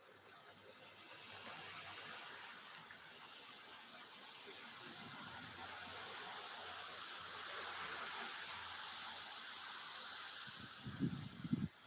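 Wet snow falls outdoors with a soft hiss that swells and then fades.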